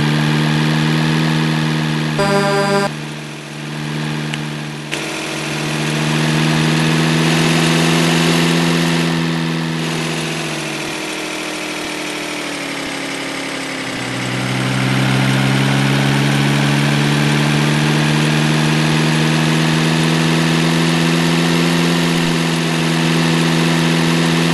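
A truck engine hums steadily, rising and falling with speed.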